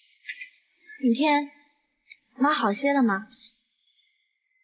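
A woman speaks calmly at a distance.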